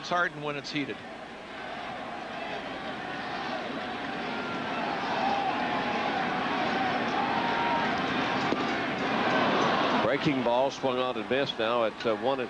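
A large stadium crowd murmurs and cheers, swelling gradually.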